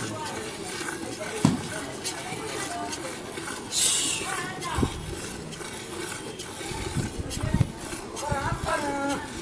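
Milk squirts in spurts into a metal pail.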